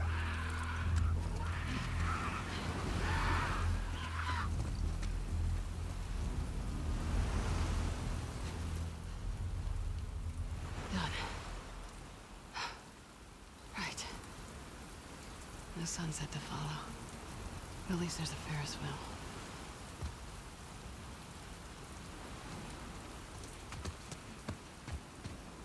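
Tall grass rustles as a person moves through it.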